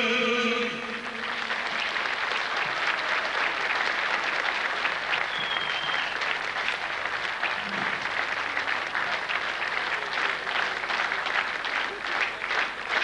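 A large audience applauds loudly in a big hall.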